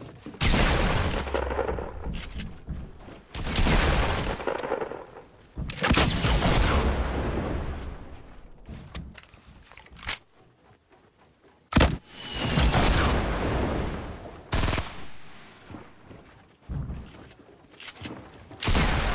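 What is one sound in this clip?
Gunshots boom loudly in a game and echo away.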